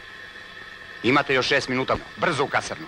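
A middle-aged man speaks firmly and loudly nearby.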